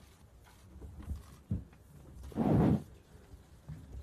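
Chairs scrape and knock as people sit down.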